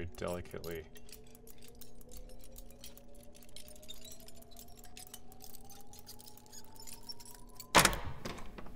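A lock rattles and clicks as it is picked.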